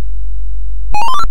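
An old computer game plays a quick run of rising beeps.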